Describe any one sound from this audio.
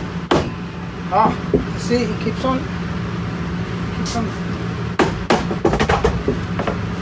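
A rubber mallet thumps against a panel several times.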